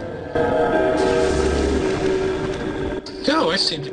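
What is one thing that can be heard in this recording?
A magic spell bursts with a loud whooshing hiss.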